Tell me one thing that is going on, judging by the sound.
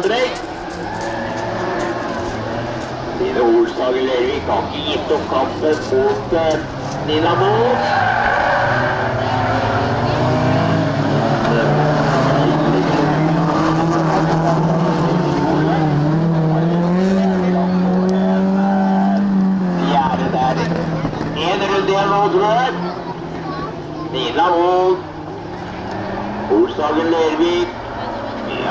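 Race car engines roar and rev as cars speed around a track.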